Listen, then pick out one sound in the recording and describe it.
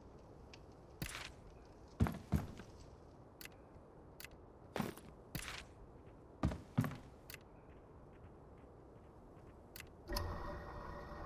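Short game menu clicks and taps sound several times.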